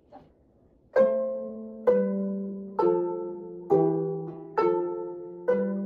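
Two zithers are plucked together in bright, ringing chords.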